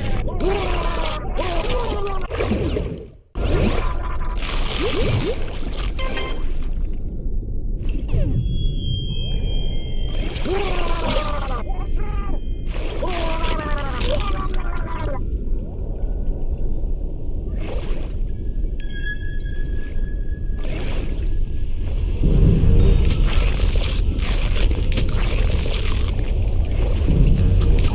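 Deep water rumbles low and steady.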